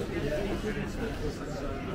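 A man and a woman talk casually close by.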